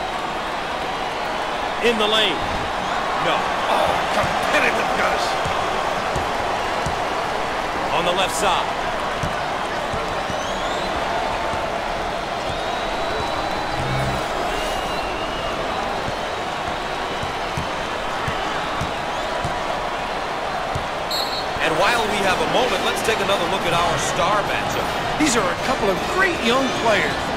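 A large crowd cheers and murmurs steadily in an echoing arena.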